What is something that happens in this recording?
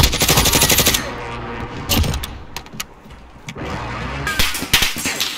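A weapon clicks and clatters as it is reloaded.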